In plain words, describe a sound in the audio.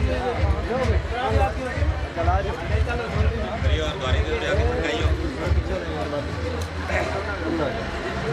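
A group of women sing together.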